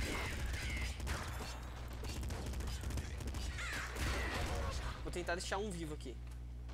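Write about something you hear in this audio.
Video game gunfire rattles in rapid bursts.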